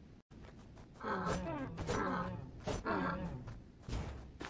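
A deer bellows loudly.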